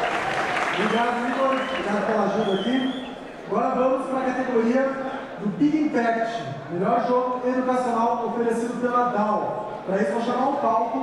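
A young man speaks calmly through a microphone in a large hall.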